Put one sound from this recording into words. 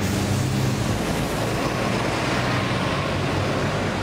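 A bus engine hums close by.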